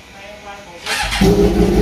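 A motorcycle engine starts and revs loudly.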